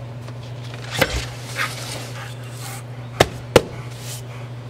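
A cardboard box thumps down into a vehicle's cargo space.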